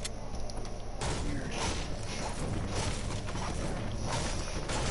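A pickaxe strikes and smashes objects with sharp cracks.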